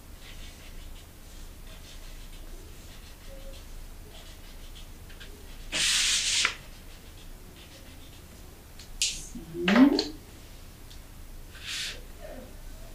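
Pencils scratch softly on paper.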